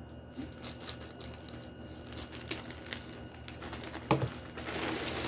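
Scissors snip through plastic.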